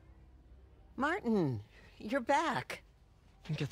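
A woman calls out warmly and happily.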